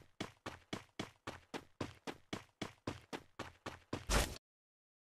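Footsteps run quickly over grass in a steady rhythm.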